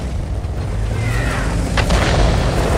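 A shell whistles through the air, falling in pitch.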